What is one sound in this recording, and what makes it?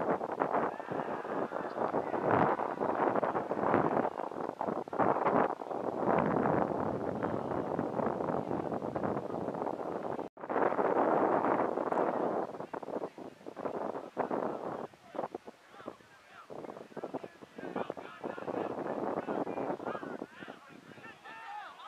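Young men shout to each other across an open field, heard from a distance.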